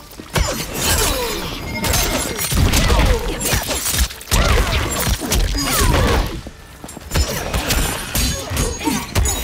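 Heavy blows land with loud thuds and crunches.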